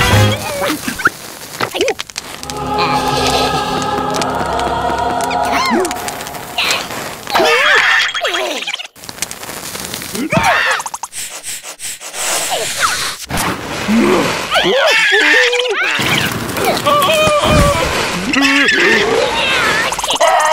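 Cartoon creatures babble and squeal in high, squeaky voices.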